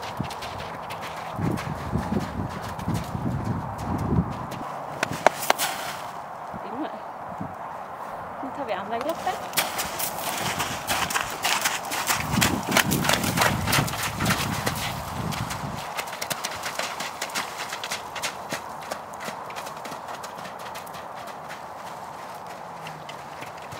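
A horse's hooves thud on soft ground at a canter.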